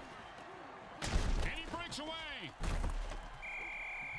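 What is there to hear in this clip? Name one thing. Heavy bodies crash together in a tackle.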